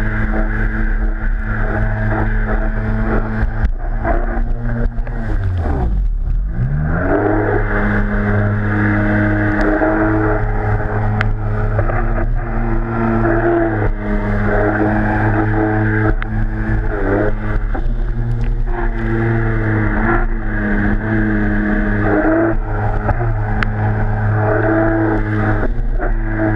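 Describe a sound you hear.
Water splashes and sprays against a jet ski's hull.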